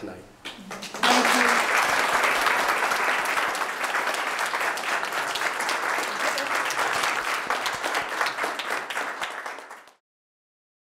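An audience applauds warmly.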